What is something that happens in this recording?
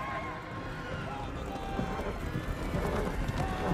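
Horses gallop with thudding hooves over soft ground.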